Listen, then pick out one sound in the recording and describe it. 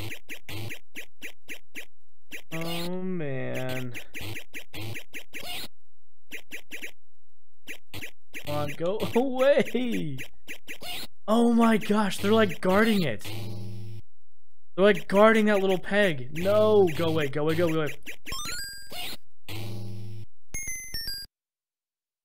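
An arcade game plays quick electronic beeps and blips.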